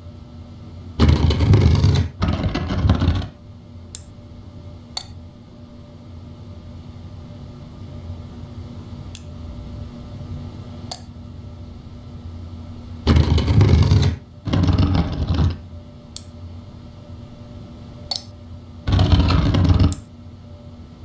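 A heavy round frame grinds as it turns.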